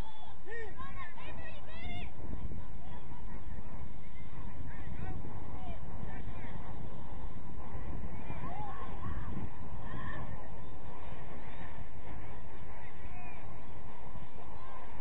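Young players shout and call out across an open field in the distance.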